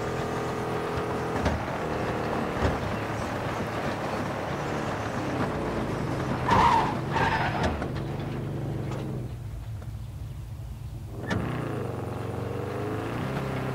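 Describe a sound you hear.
A car engine hums steadily and revs as the car drives along.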